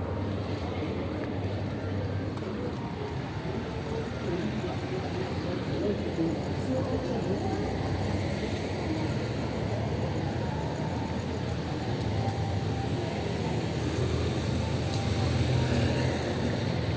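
Car and bus engines idle in steady traffic outdoors.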